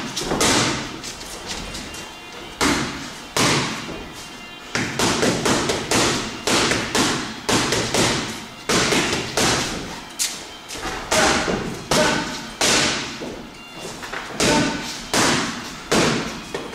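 Punches ring out in a large echoing hall.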